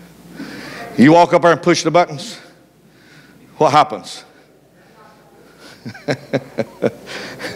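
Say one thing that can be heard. An elderly man preaches with animation through a microphone in a large echoing hall.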